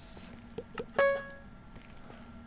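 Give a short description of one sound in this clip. A video game chest opens with a short chiming tone.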